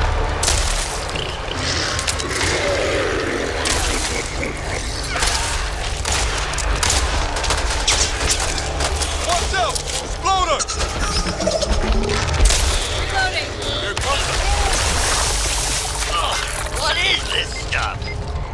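Gunshots fire rapidly and boom.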